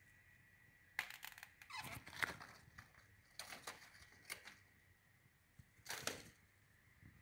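Pruning shears snip through plant stems.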